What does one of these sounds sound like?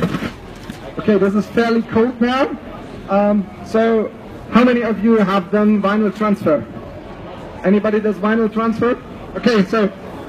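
A man speaks loudly into a microphone through loudspeakers, with animation.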